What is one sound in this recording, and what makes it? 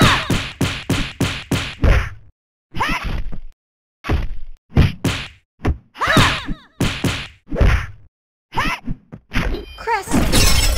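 Sword slashes and punches land in quick bursts.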